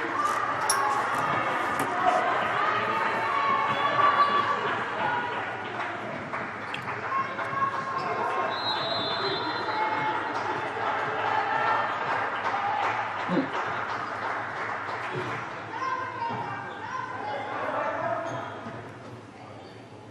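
Players shout and call out across a large echoing hall.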